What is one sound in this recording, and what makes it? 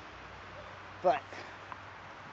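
A dog barks nearby.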